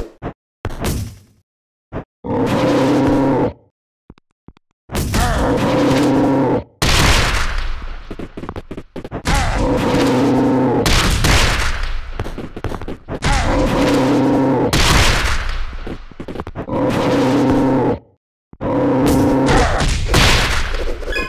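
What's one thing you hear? Blows land with heavy thuds and smacks.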